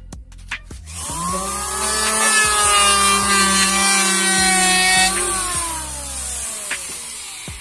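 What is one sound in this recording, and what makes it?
An electric planer whines as it shaves wood, then winds down.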